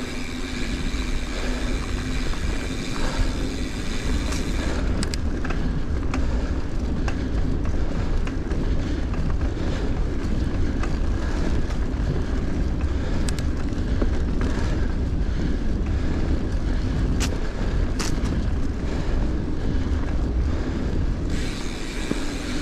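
Wind rumbles steadily past close by.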